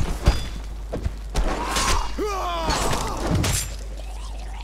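A blade swings and strikes with sharp clashes.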